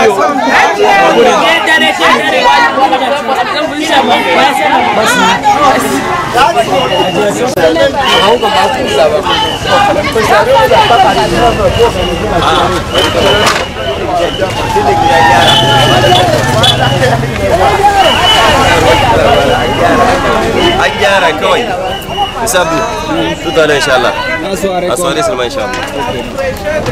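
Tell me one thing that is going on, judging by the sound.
A crowd of men and women chatter nearby.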